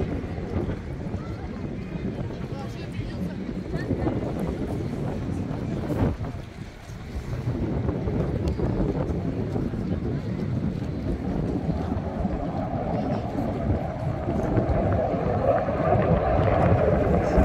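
Small waves ripple and lap gently.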